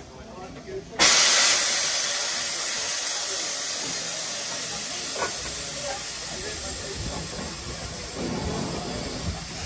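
Steam hisses loudly and steadily from a locomotive, slowly easing off.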